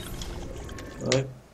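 A climber grabs hold of a wooden beam with a knock.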